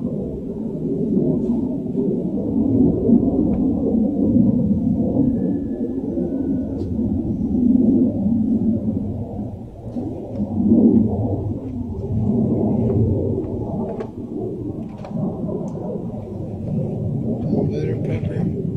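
A hand pats and rubs a dog's fur.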